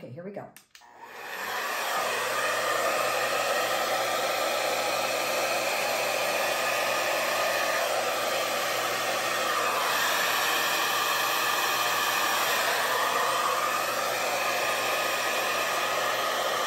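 A heat gun blows with a steady, loud whooshing hum.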